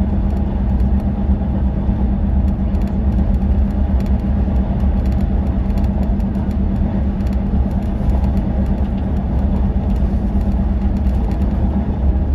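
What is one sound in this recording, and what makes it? A vehicle's engine drones steadily as it drives along a motorway.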